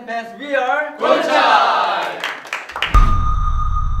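A group of young men clap their hands and cheer.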